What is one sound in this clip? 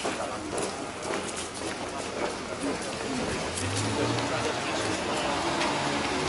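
Footsteps shuffle and tap on paving stones as a group marches past.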